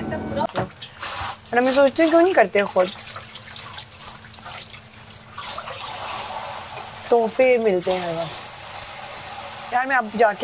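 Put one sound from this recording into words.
Water runs from a tap into a sink.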